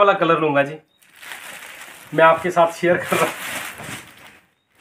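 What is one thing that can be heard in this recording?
Fabric rustles as it is unfolded.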